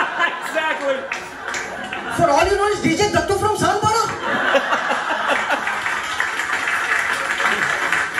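A young man laughs softly and close by.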